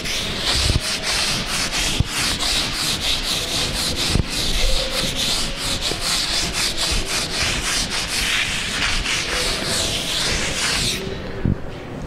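Chalk scratches and taps on a blackboard.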